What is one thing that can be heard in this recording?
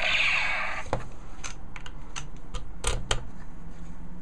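Plastic switches on a toy click sharply a few times.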